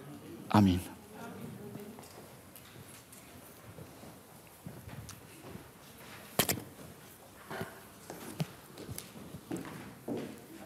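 People in an audience murmur and move about.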